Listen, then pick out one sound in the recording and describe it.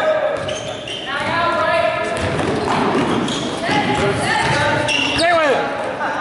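A basketball thumps on a wooden floor.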